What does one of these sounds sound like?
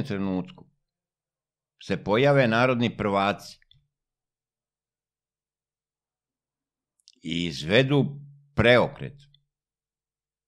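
An older man speaks calmly and close into a microphone, in short phrases with long pauses.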